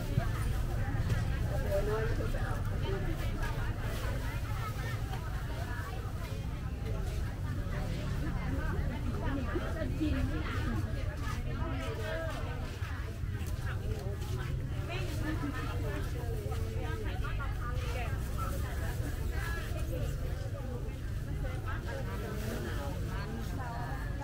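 Men and women chatter at a distance in an open-air market.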